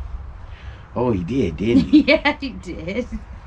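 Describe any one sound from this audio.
A middle-aged woman laughs nearby.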